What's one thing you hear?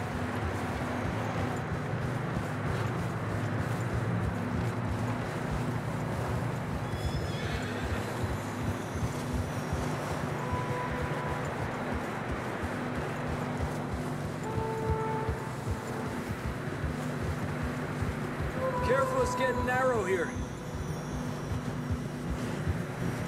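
Horse hooves crunch steadily through snow.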